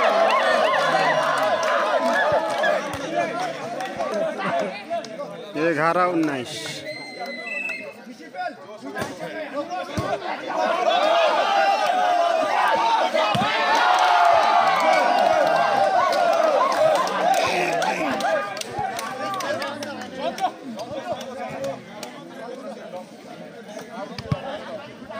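A large crowd outdoors cheers and shouts.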